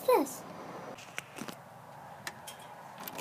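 A key rattles and clicks in a door lock.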